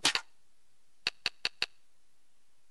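A menu gives several quick soft clicks.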